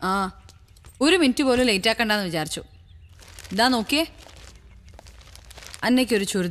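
A young woman talks on a phone with animation, close by.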